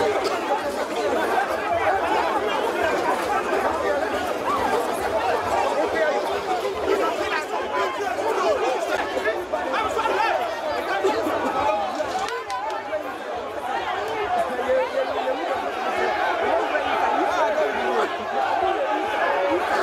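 A large crowd shouts and clamours outdoors.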